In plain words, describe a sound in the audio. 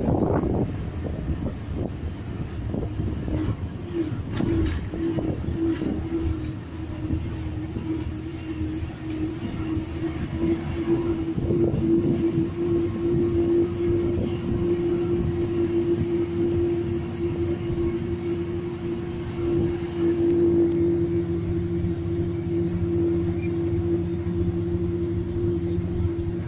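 The bus body rattles and shakes over the road.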